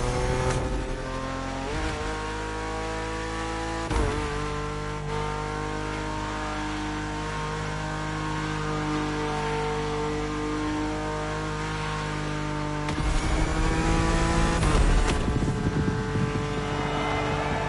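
A racing car engine roars at high speed, shifting up through the gears.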